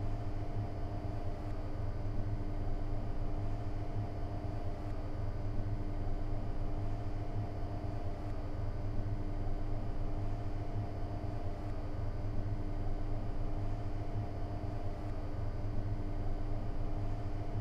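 An electric locomotive hums steadily as the train rolls slowly along the tracks.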